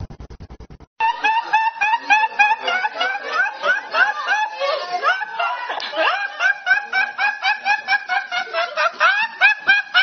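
A young man laughs hard and high-pitched, close by.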